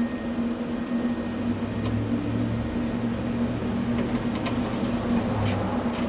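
Hands work on a car door window glass.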